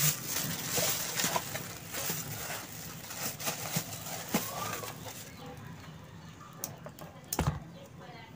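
A small screwdriver clicks and scrapes against small metal parts.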